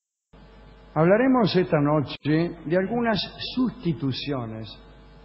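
A young man speaks expressively.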